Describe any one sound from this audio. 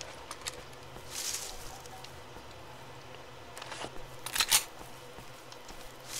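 A gun clicks as it is put away and another is drawn.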